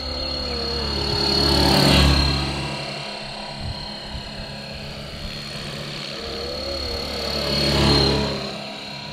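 A model helicopter's rotor whooshes loudly as it swoops close past.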